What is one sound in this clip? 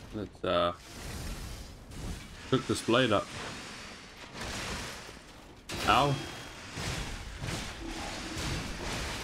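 Metal clangs as a sword strikes a clanking machine.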